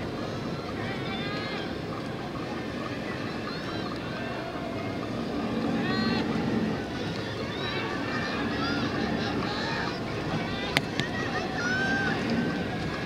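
Spectators shout encouragement outdoors.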